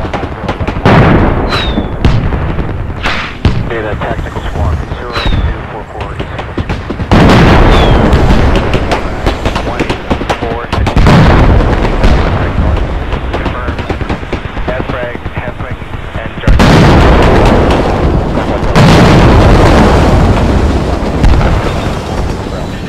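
Loud explosions boom and rumble one after another.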